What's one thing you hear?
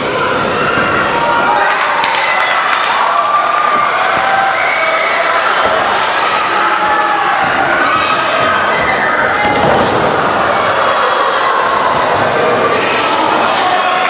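A crowd cheers and shouts in a large hall.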